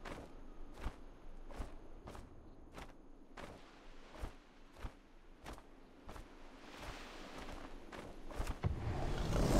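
Large wings flap in a steady rhythm.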